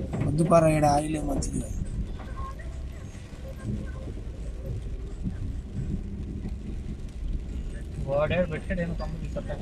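Rain patters on a car windshield.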